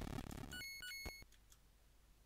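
Short electronic game beeps sound.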